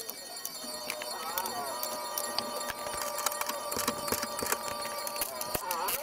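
A wrench ratchets on a wheel nut.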